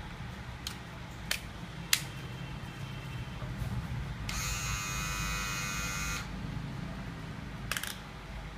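Plastic parts click and snap together.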